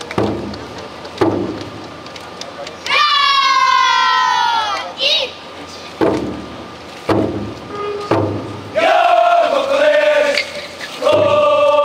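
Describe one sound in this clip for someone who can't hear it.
A large drum booms in heavy beats.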